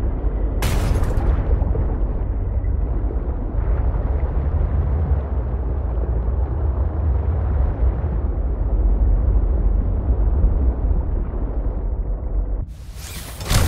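A small underwater vehicle's engine hums low and steady.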